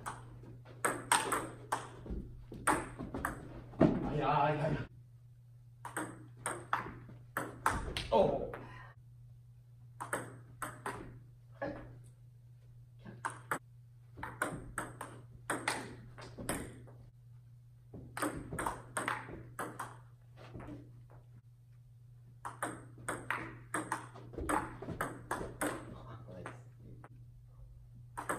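A ping-pong ball clicks back and forth between paddles and a table in a quick rally.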